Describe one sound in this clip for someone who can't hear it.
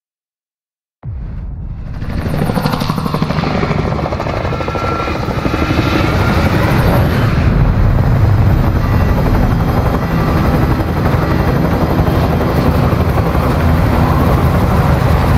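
Helicopter rotors thump loudly and steadily.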